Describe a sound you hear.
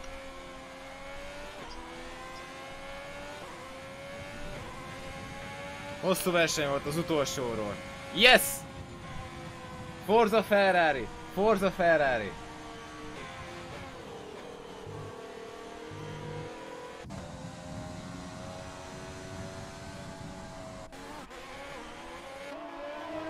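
A racing car engine whines steadily, rising and falling in pitch.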